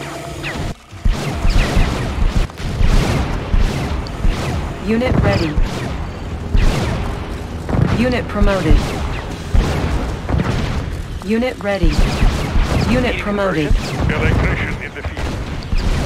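Explosions boom again and again.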